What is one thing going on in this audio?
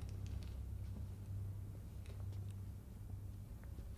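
Footsteps tread softly on a carpet.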